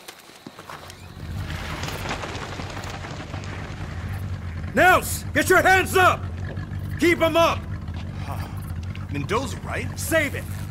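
A motorboat engine idles with a low steady rumble.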